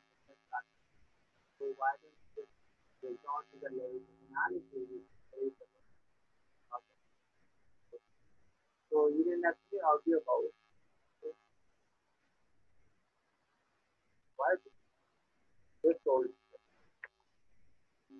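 A young man speaks in short bursts over an online call.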